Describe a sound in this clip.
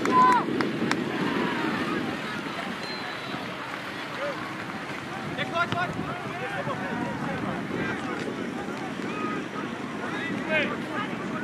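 Young players shout to each other across an open field.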